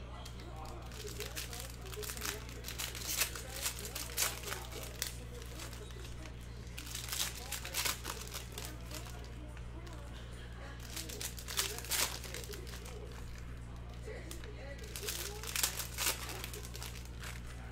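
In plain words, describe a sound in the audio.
Foil wrappers crinkle and tear in bursts.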